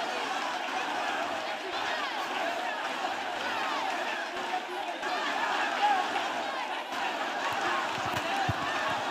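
A large crowd of men and women pray aloud all at once, loud and overlapping.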